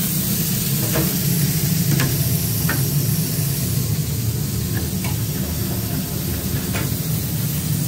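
Metal fryer baskets clink and knock.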